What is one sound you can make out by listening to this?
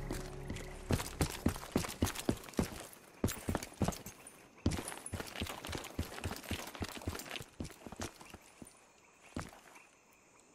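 Footsteps crunch quickly over rubble and hard ground.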